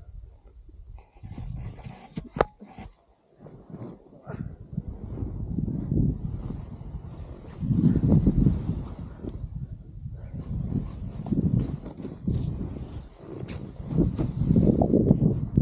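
A snowboard carves and scrapes through soft snow.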